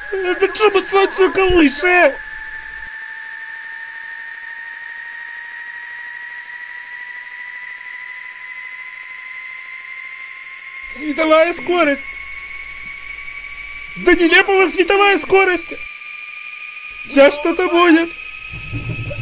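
A man screams loudly and frantically, close by.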